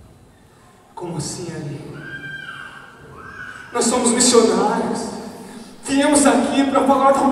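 A young man speaks loudly and with animation.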